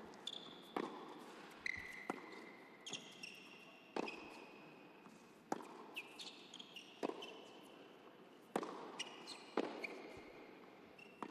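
Tennis balls are struck with sharp pops, echoing in a large hall.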